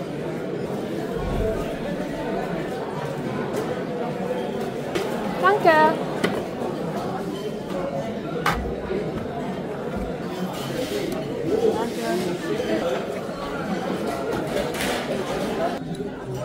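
A crowd chatters in a busy room.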